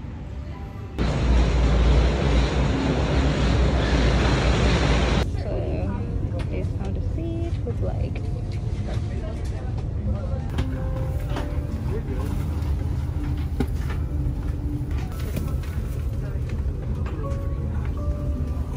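A steady rushing roar of aircraft cabin noise fills the air.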